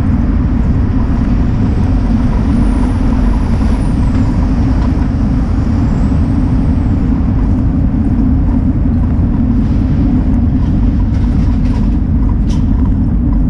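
Tyres hum steadily on a paved road.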